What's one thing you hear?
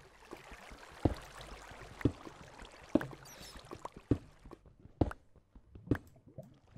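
A pickaxe strikes stone with regular knocking blows.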